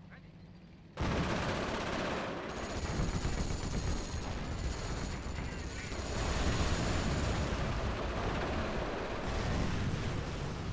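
Tank cannons fire and shells explode in a loud, continuous battle.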